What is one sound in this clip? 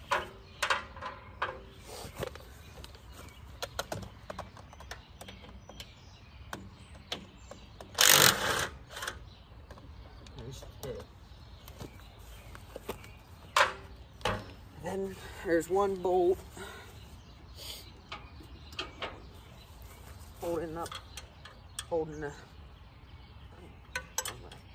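Metal parts clank and knock on an old tractor.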